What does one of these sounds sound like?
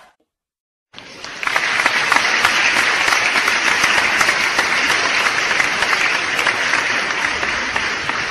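A large crowd applauds loudly and cheers in a big hall.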